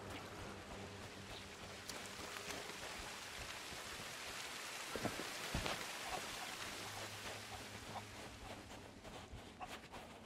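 A waterfall splashes and roars steadily nearby.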